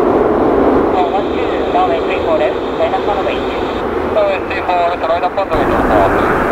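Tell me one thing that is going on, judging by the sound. Jet engines whine as an airliner touches down and brakes.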